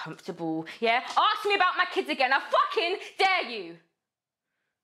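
A young woman speaks loudly and forcefully, close to a microphone.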